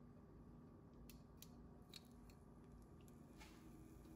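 A piece of beef is laid into a pan with a soft slap.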